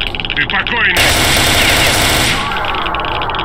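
A rifle fires a rapid burst of loud shots in an echoing space.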